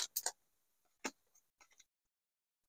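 Cards rustle as fingers slide them apart.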